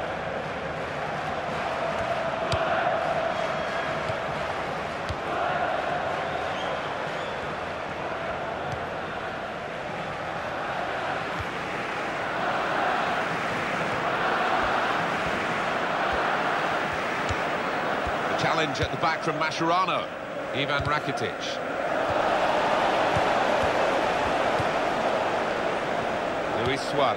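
A stadium crowd roars and murmurs.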